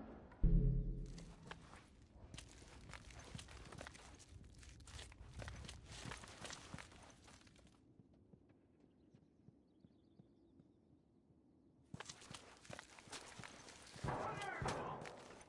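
Footsteps shuffle softly across a hard floor.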